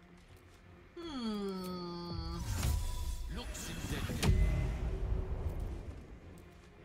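A magic spell bursts with a loud, ringing whoosh.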